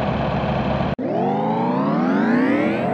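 A car engine revs up, rising steadily in pitch.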